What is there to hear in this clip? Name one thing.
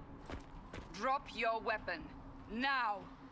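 A woman speaks sternly, close by.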